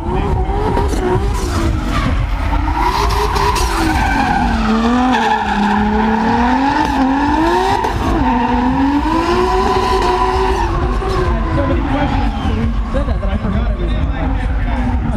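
Car engines rev hard, rising and falling in pitch.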